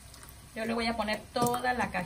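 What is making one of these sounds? Thick sauce pours into a pot.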